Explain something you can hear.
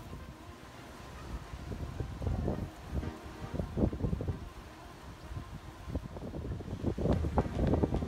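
Waves break and wash onto a beach nearby.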